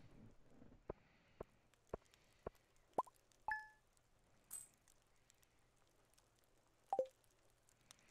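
Short electronic game ticks and chimes sound as coins are tallied.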